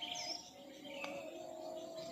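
A golf putter taps a ball.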